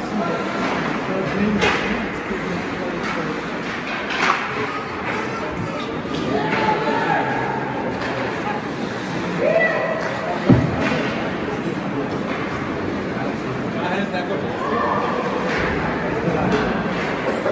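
Skates scrape and hiss across ice in a large echoing hall.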